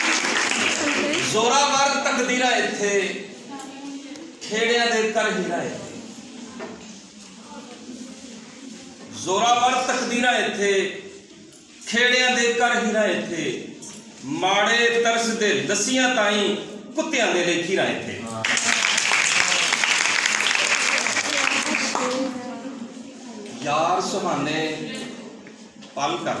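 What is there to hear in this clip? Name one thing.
A man sings loudly with a strong, drawn-out voice.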